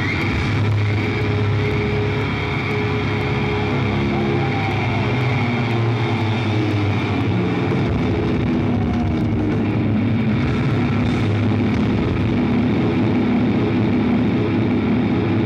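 Loud distorted electric guitars play heavy metal music through a large sound system.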